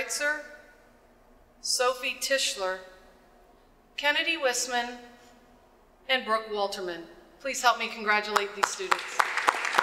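A young woman speaks into a microphone over loudspeakers in a large echoing hall.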